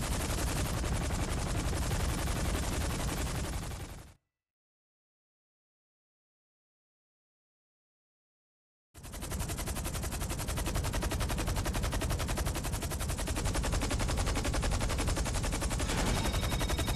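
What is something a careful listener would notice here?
A helicopter's rotor thumps rapidly and loudly close by.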